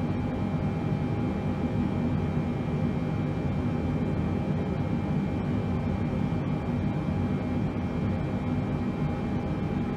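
A steady low engine rumble drones.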